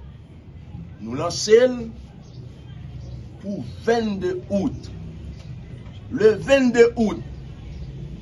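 A man speaks forcefully into a microphone in short bursts.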